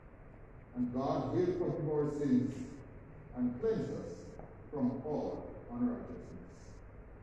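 A man reads aloud from a distance, echoing in a large hall.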